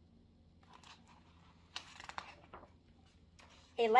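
Book pages rustle as they turn.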